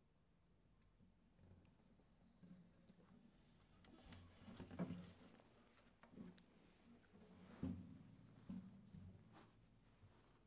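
A guitar's wooden body knocks and thumps as it is handled and set down.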